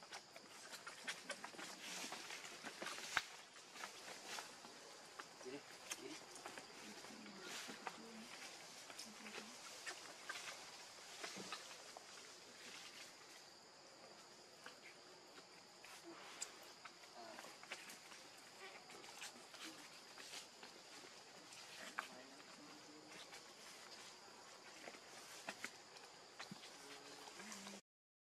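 A baby monkey squeaks softly now and then.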